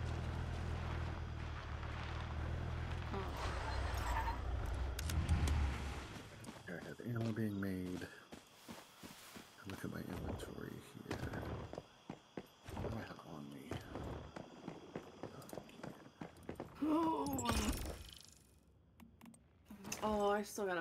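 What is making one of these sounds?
A young person talks with animation into a microphone.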